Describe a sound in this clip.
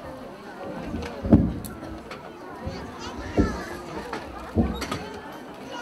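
Music stands clatter and thump as they are moved.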